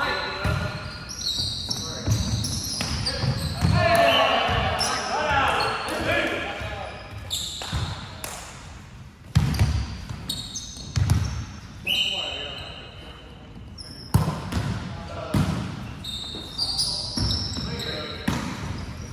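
A volleyball is struck with sharp slaps that echo around a large hall.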